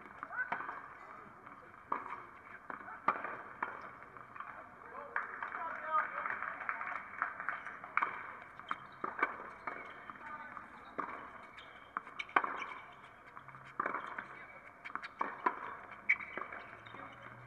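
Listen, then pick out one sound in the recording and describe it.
Tennis balls are struck with sharp pops of rackets.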